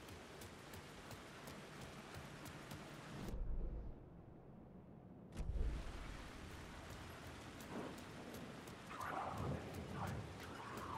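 Footsteps splash slowly on wet ground.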